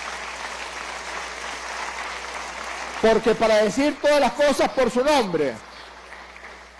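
A crowd applauds steadily in a large hall.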